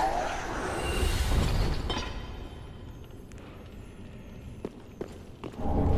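Heavy armoured footsteps clank on stone.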